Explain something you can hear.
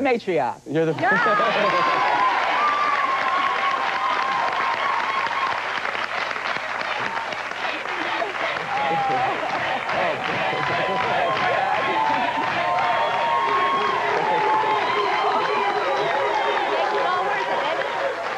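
A studio audience claps and cheers loudly.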